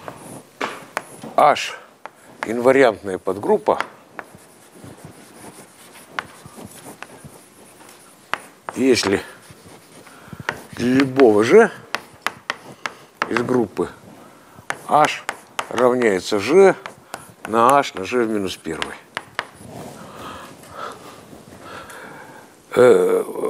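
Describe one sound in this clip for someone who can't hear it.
An older man speaks calmly in bursts, in a room with some echo.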